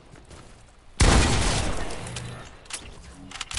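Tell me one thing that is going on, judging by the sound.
Rapid gunfire bursts loudly, then trails off.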